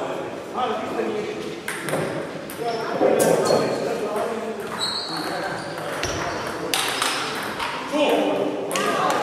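Ping-pong balls click sharply against paddles and tables in a large echoing hall.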